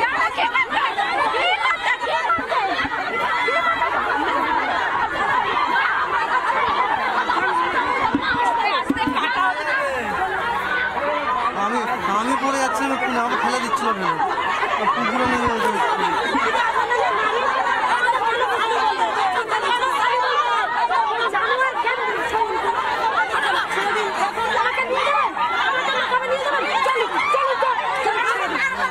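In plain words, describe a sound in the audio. A crowd of women shout and argue loudly, close by.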